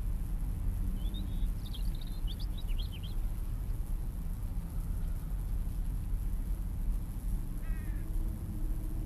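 Birds chirp briefly overhead.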